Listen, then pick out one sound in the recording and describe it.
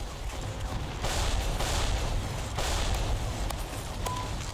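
A sniper rifle fires loud, sharp shots.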